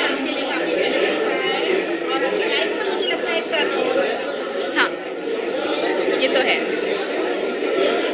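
A young woman speaks calmly into microphones close by.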